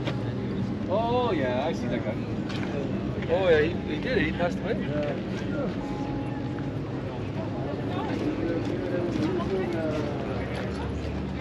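Men talk nearby in casual voices.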